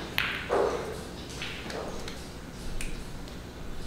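Snooker balls click sharply against each other on a table.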